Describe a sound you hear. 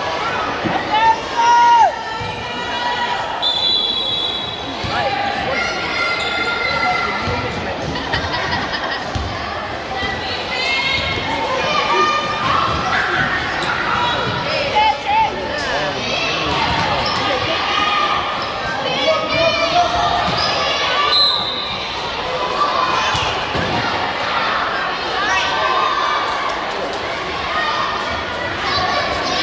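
A crowd chatters and cheers loudly in a large echoing gym.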